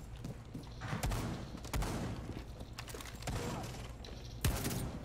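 Loud thumps and bangs sound in a video game.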